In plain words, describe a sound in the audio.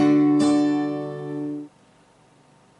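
An acoustic guitar chord is strummed and rings out, then stops abruptly.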